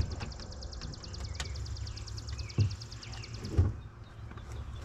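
A car door panel clatters down onto the ground.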